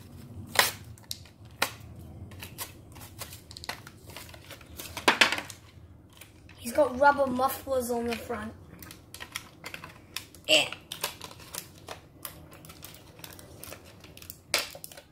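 Plastic packaging crinkles and rustles in small hands.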